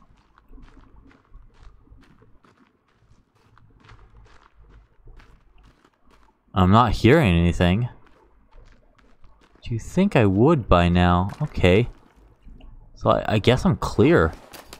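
Footsteps scuff slowly over rocky ground.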